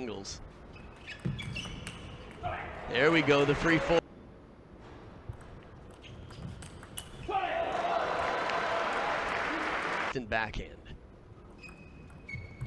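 A ping pong ball clicks against paddles and the table in a quick rally.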